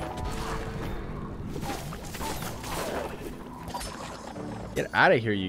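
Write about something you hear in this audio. Magic blasts and explosions crackle and boom.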